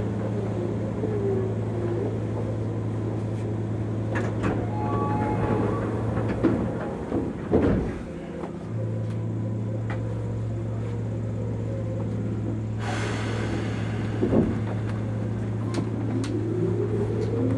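A train hums steadily while standing still.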